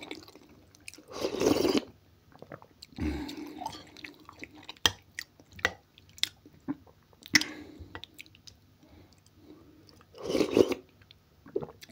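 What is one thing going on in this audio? A man slurps soup from a spoon close by.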